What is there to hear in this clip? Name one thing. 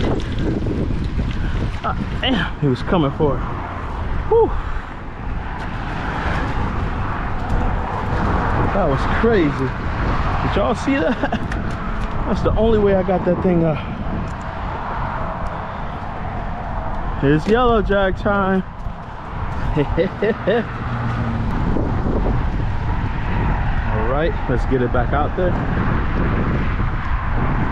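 Wind blows in strong, steady gusts outdoors.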